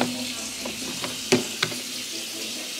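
A plastic filter basket clicks as it is lifted out of a coffee maker.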